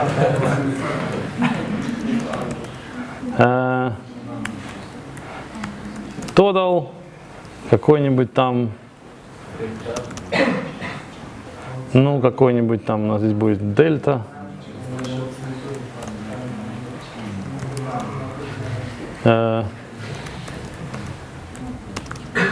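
A man types on a laptop keyboard.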